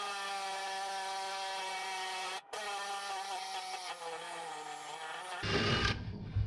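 A power drill whines steadily close by.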